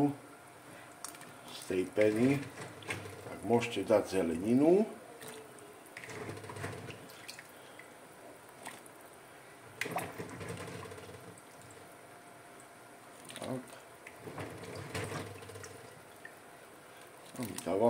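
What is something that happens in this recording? Vegetables plop into boiling water.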